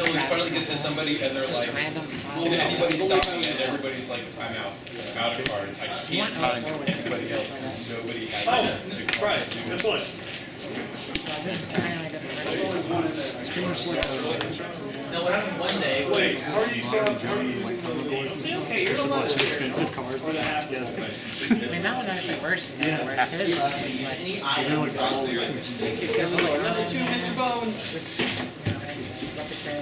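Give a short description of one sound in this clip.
Playing cards slide and tap softly on a table mat.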